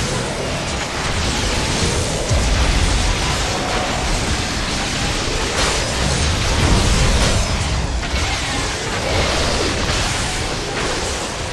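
Monsters roar and growl.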